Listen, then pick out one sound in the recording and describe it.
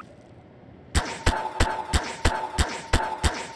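A gun fires a quick series of loud shots.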